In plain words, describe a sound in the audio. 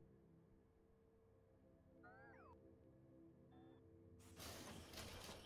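Machines hum and whir steadily.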